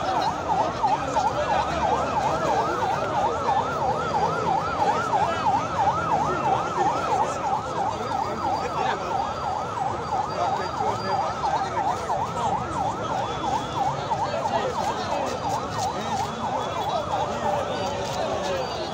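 A large outdoor crowd murmurs and shouts.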